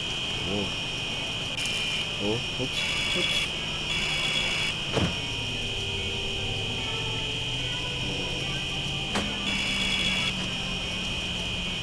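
A high electronic alarm beeps in repeated pulses over a steady tone.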